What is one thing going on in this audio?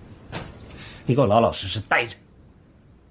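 A middle-aged man speaks firmly and close by.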